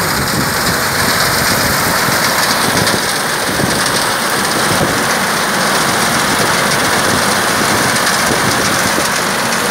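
A reaper cutter clatters as it cuts through dry wheat stalks.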